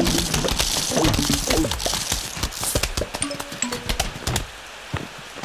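Cartoonish game sound effects pop and thud in quick succession.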